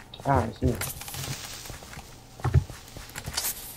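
A creature hisses sharply.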